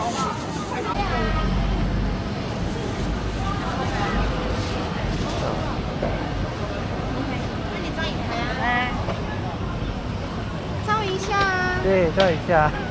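A crowd murmurs outdoors in a busy street.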